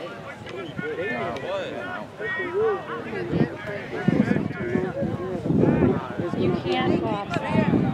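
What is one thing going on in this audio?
Young players shout to each other in the distance outdoors.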